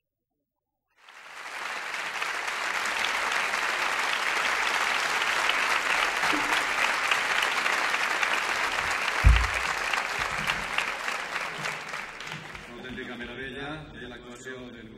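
A large audience applauds loudly in an echoing hall, then the applause fades.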